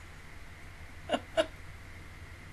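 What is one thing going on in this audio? A young woman laughs briefly, close to a microphone.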